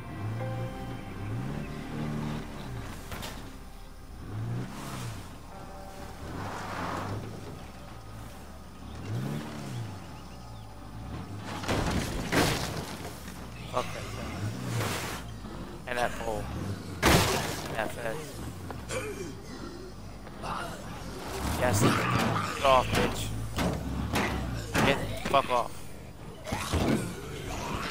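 A car engine hums and revs as a vehicle drives over rough ground.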